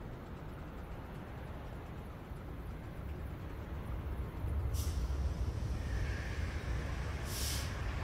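An electric train rumbles closer and roars past.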